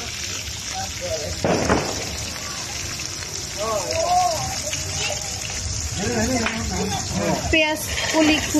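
Food sizzles softly in a hot wok.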